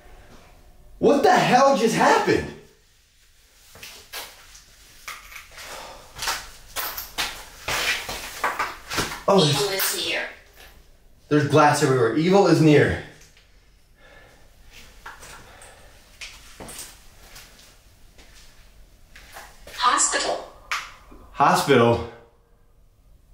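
A young man speaks in bursts, close by, with animation.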